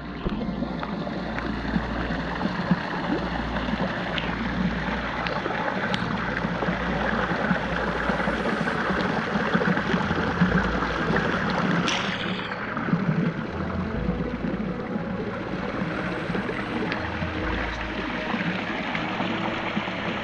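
A small waterfall splashes steadily into a pond, heard close by.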